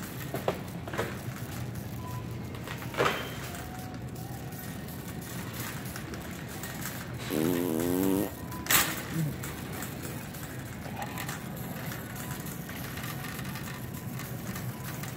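A shopping cart rolls along a hard floor with a steady low rumble.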